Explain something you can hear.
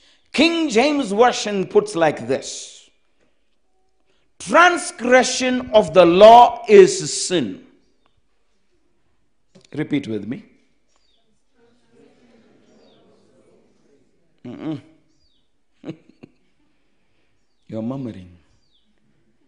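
A man preaches with animation into a microphone, pausing between phrases.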